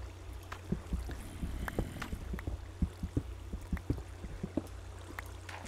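A pickaxe chips at stone blocks in a video game, with short clicking knocks.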